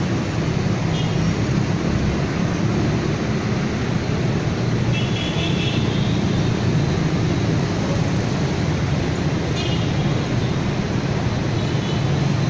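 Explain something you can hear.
Motorbike horns honk now and then.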